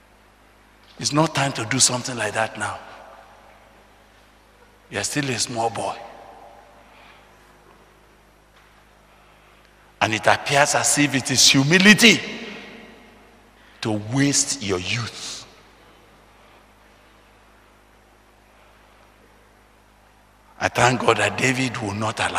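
An elderly man speaks with animation into a microphone, heard through a loudspeaker in bursts with pauses.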